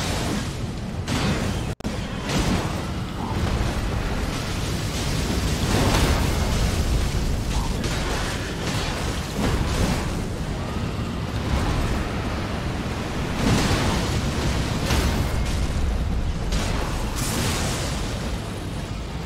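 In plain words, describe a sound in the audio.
Heavy metal weapons clash and thud.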